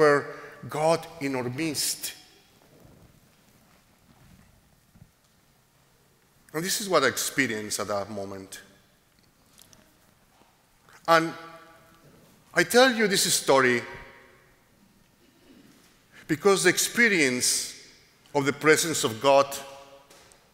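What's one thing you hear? A middle-aged man speaks calmly into a microphone in phrases with pauses, in a large echoing hall.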